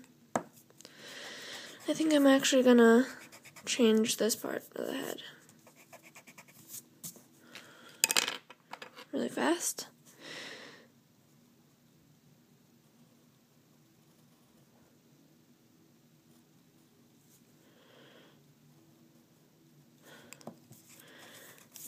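An eraser rubs against paper.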